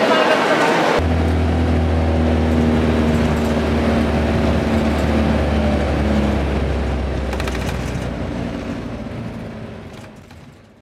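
A car engine hums steadily from inside the car, fading at the end.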